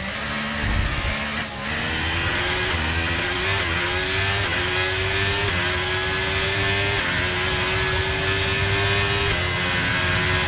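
A racing car engine screams, rising in pitch as it shifts up through the gears.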